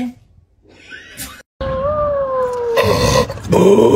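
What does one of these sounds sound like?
A dog lets out a short, rough howl that bends in pitch.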